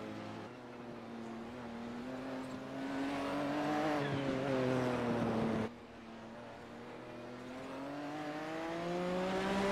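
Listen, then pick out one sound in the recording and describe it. A race car engine roars, rising and falling in pitch as it passes and shifts gears.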